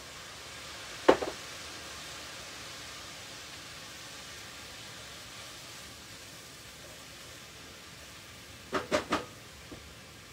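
A metal utensil clinks against a pot.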